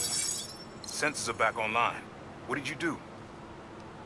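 A man asks a question through a headset.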